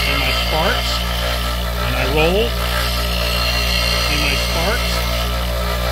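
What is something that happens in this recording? A steel chisel grinds against a spinning stone wheel with a hiss.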